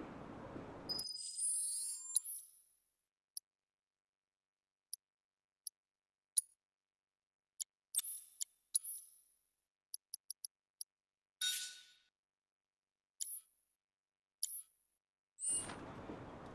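Game menu sounds beep and chime as options are picked.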